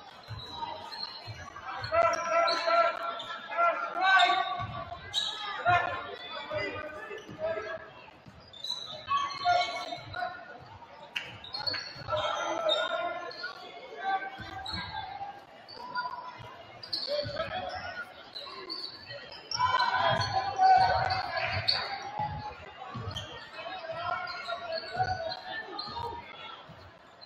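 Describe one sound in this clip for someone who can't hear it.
A crowd of spectators talks and calls out in an echoing gym.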